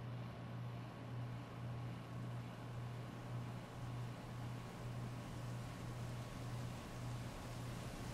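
Heavy rain pours steadily and splashes on wet pavement.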